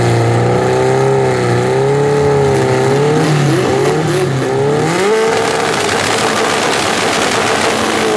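Race car engines rumble and rev loudly nearby.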